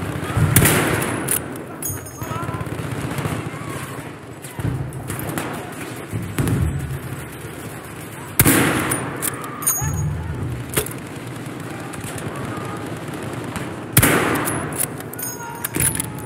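A rifle bolt clicks as it is worked back and forth.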